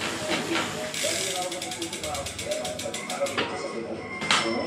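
A bicycle's rear hub ticks rapidly as the wheel spins.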